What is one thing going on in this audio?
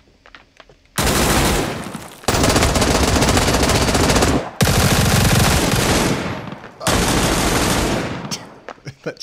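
A rifle fires loud rapid bursts.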